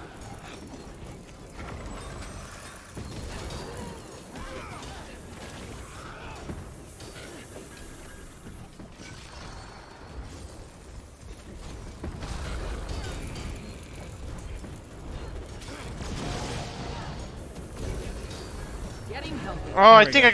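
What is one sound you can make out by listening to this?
Game combat sounds of spells and hits play continuously.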